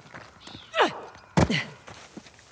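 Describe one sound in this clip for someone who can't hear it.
A person lands heavily after a jump.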